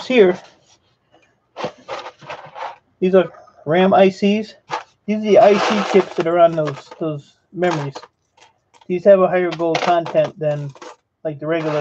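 Small metal parts rattle in a plastic box.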